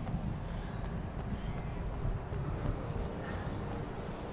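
Footsteps run across stone.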